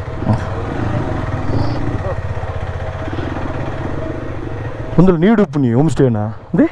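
A motorcycle engine idles and rumbles steadily up close.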